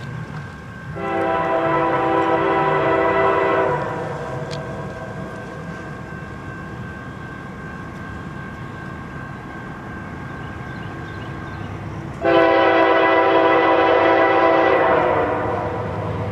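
A train horn blows two long, loud blasts as the train approaches.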